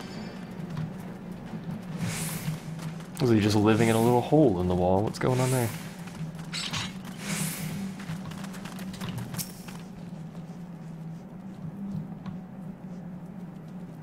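Footsteps patter on stone as figures run along a passage.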